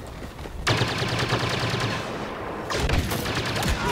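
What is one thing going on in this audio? Blaster guns fire in quick bursts.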